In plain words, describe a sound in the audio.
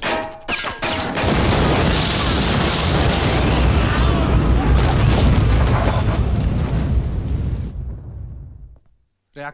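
A huge explosion booms and rumbles.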